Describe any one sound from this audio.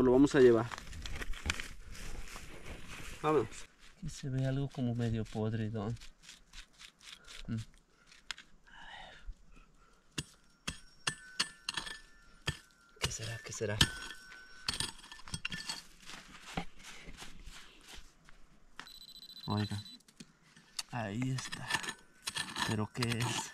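A trowel scrapes and digs into dry, sandy soil.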